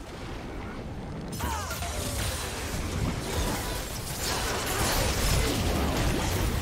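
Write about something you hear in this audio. Magic spells whoosh and crackle in a busy fight.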